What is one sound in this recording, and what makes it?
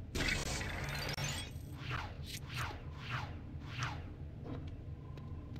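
Small studs jingle as they are picked up.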